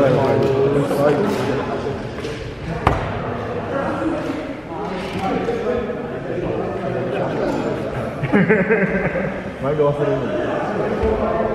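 Men talk with animation close by in a large echoing hall.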